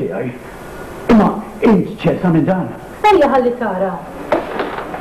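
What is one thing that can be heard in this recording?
A middle-aged woman speaks calmly.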